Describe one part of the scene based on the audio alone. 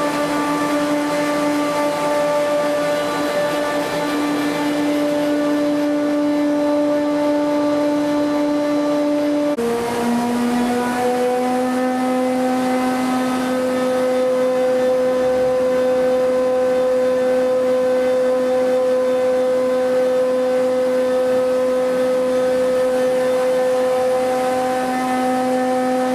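A large machine runs with a steady, loud humming drone.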